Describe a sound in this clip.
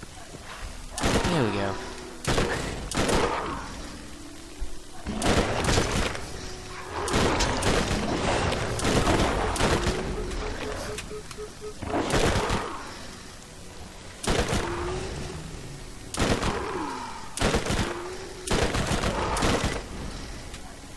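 Gunfire bursts in rapid volleys.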